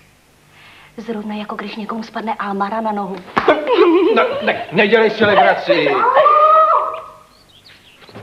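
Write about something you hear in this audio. A woman speaks with excitement close by.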